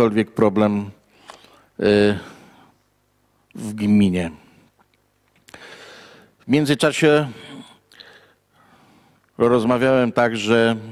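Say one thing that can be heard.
An older man speaks slowly and haltingly into a close microphone.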